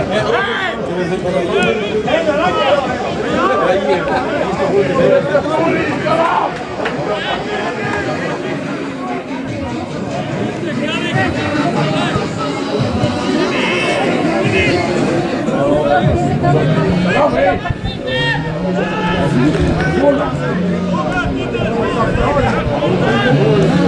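Players shout and call to one another outdoors on an open field.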